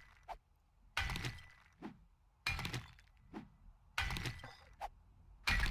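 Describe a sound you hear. A pickaxe strikes rock with sharp thuds, again and again.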